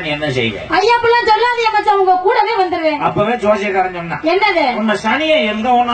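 A woman speaks loudly into a microphone over a loudspeaker.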